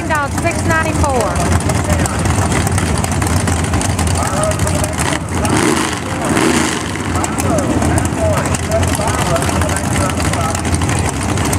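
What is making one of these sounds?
A race car engine revs up sharply in bursts.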